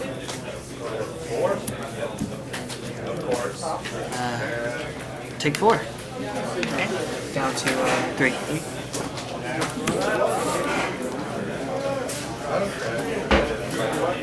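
Playing cards riffle as they are shuffled in hand.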